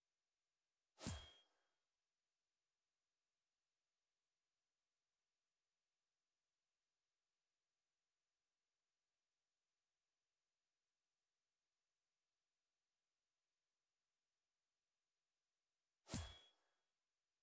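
A short menu selection click sounds.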